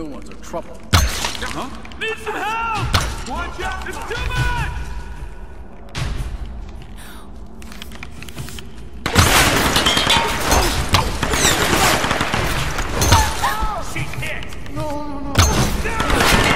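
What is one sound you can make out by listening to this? A bowstring twangs as arrows are shot.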